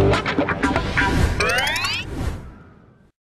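A bright game jingle sparkles with rising chimes.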